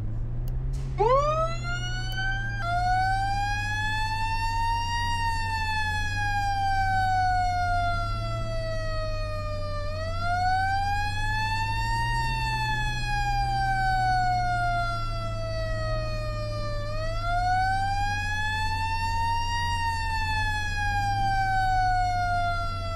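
A siren wails up and down in long, slow sweeps.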